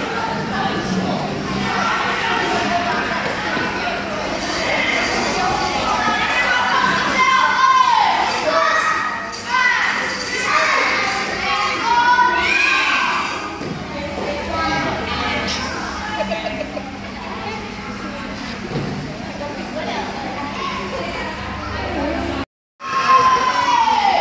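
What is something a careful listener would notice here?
Children chatter and shout across a large echoing hall.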